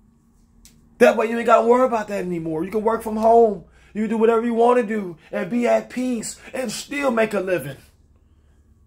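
A young man talks close up with animation.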